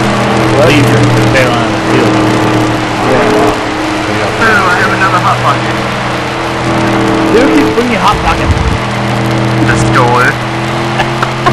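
A race car engine roars steadily at high speed.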